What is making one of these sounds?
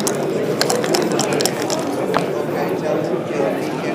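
Dice rattle and tumble onto a board.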